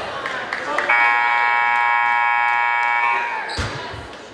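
A loud buzzer sounds steadily for about two seconds.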